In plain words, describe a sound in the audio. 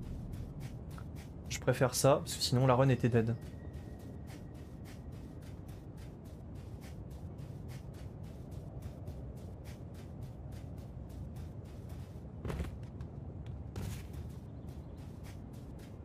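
Footsteps run quickly and steadily over gritty ground.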